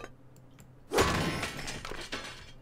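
A cleaver strikes a metal barrel with a loud clang.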